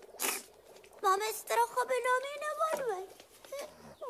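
A woman speaks in a strained, animated voice.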